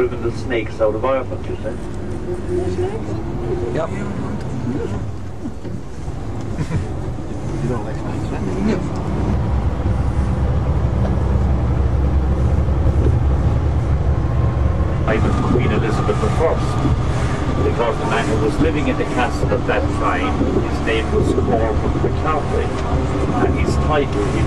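A bus engine rumbles steadily while driving.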